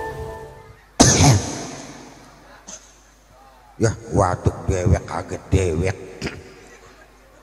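A man speaks with animation through a microphone and loudspeakers, with a ringing echo.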